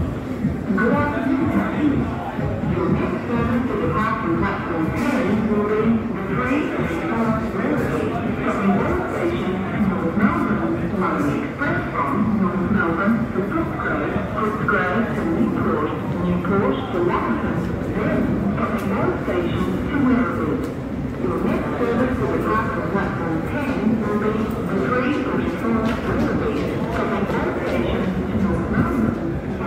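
A stationary train hums steadily.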